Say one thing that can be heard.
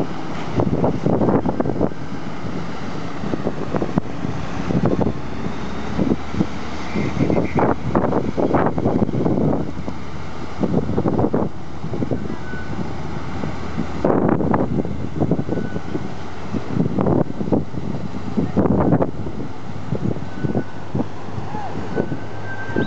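A truck engine rumbles as it drives through deep water.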